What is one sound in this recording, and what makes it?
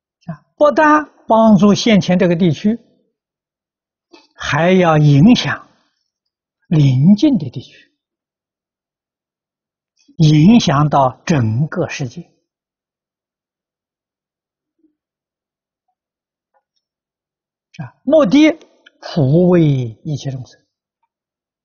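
An elderly man speaks calmly and slowly, in short phrases with long pauses, close to a microphone.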